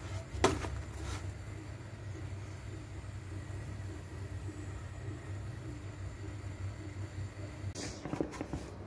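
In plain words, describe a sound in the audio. Flatbread sizzles softly in a hot pan.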